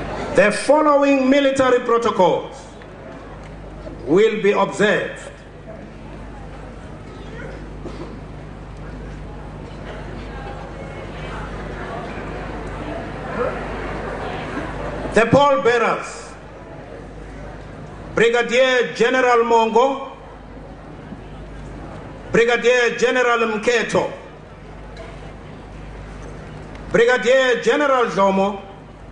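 A man speaks slowly and formally through a microphone and loudspeakers, with pauses between phrases.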